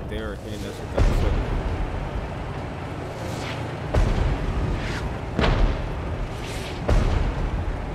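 Heavy explosions boom loudly, one after another.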